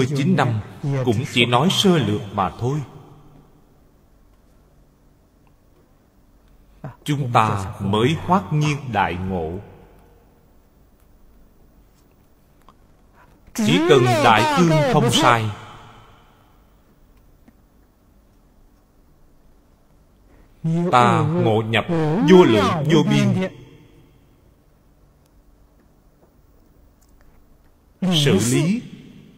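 An elderly man speaks calmly and slowly into a close microphone, in short phrases with long pauses.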